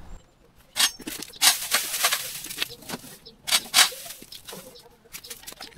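Brush and branches rustle and crash as they are tossed onto a pile.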